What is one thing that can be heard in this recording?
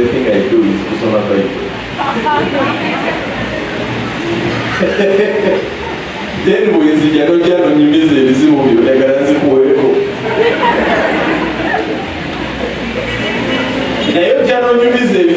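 A man speaks with animation into a microphone, heard through loudspeakers in a large room.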